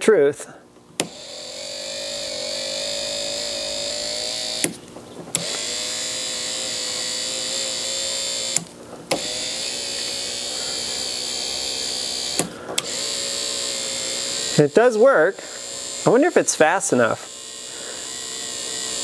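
A small electric motor whirs steadily, pausing briefly now and then.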